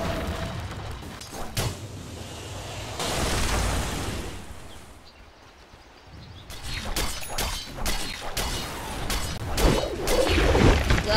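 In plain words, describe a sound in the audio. Sharp hits and magical blasts clash in a fast game battle.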